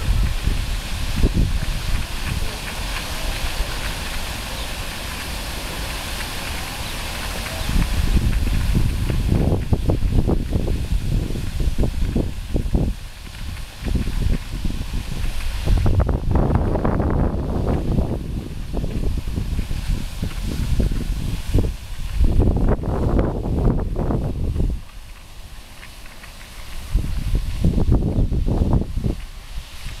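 Fountain jets hiss and spray falls splashing onto a pond.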